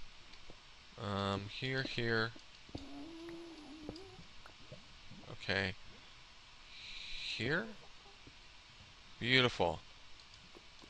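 A man speaks through a microphone now and then.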